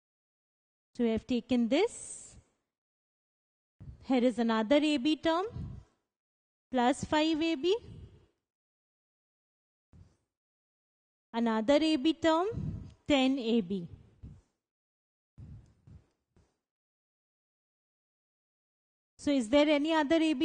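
A woman explains calmly through a clip-on microphone, in short phrases with pauses.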